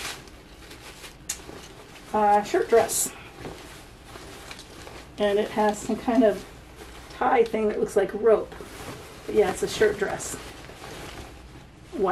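Fabric rustles as a garment is handled.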